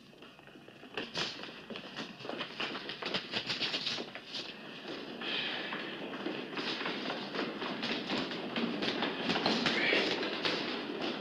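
Footsteps clatter quickly down stairs.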